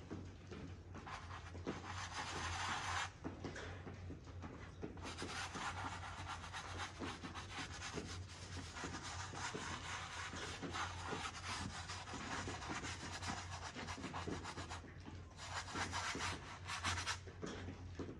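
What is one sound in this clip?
A brush scrapes and swishes across a canvas.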